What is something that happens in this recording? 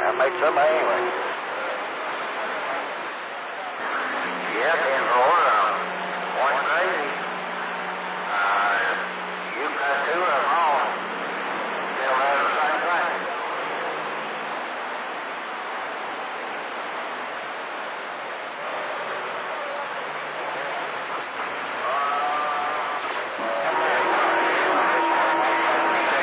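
A radio hisses and crackles with static.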